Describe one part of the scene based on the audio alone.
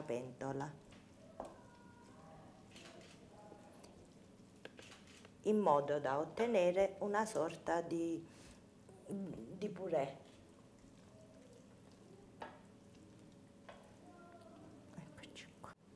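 A hand squishes and mixes soft food in a metal pot.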